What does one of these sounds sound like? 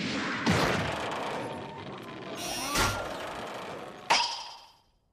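Heavy punches land with sharp, booming thuds.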